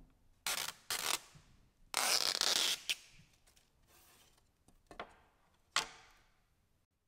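Sheets of thin plastic rustle and crinkle as they are handled.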